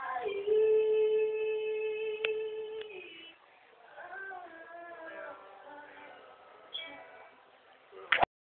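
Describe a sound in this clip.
Young women sing together through a loudspeaker in an echoing hall.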